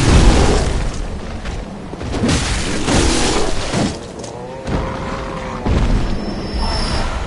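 A monster growls and groans.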